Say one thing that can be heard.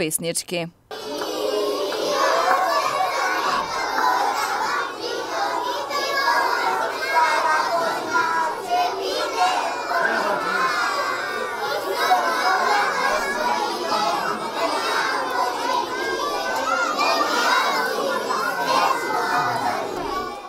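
A crowd of young children sings loudly together indoors.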